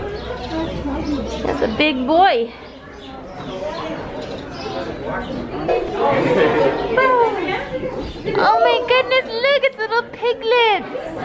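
A woman speaks nearby in a high, sing-song voice.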